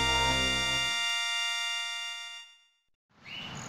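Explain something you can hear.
A bright game jingle rings out and fades away.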